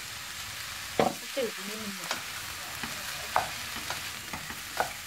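A wooden spatula scrapes and stirs rice in a pan.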